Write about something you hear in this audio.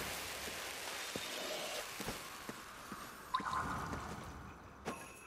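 A magical energy blast whooshes and crackles.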